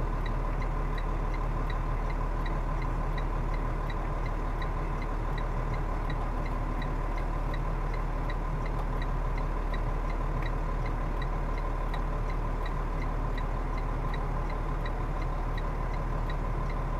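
A truck's reversing alarm beeps.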